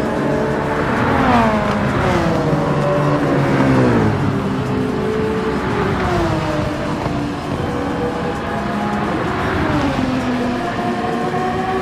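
Car engines whine past one after another, dropping in pitch as they go by.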